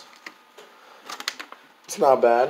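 A small plastic toy clicks and rattles as a hand picks it up.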